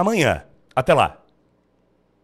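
A man speaks animatedly into a close microphone.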